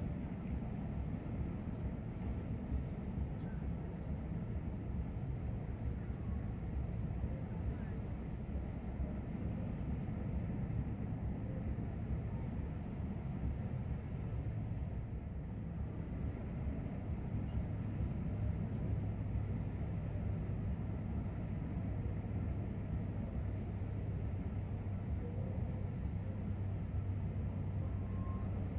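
A large ship's engines hum low and steady nearby.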